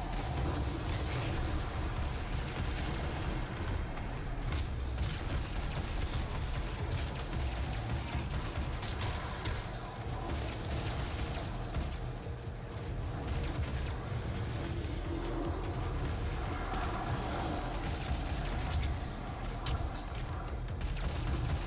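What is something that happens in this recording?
Flesh squelches and tears with brutal, heavy blows.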